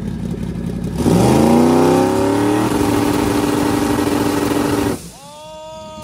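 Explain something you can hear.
A big engine revs up loudly and roars, then cuts off.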